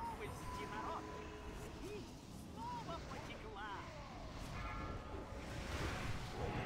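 Magic spells chime and whoosh in a busy fantasy battle.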